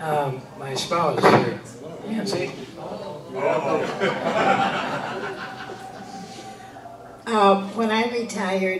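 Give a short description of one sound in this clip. An elderly man speaks into a microphone to an audience.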